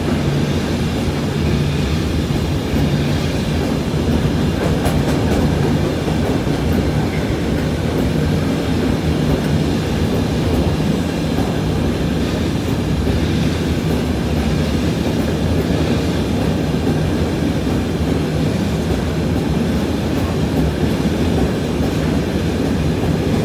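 A long freight train rumbles past close by at speed.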